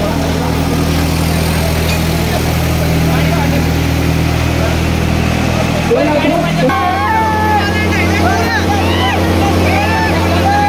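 A tractor engine rumbles loudly and steadily close by.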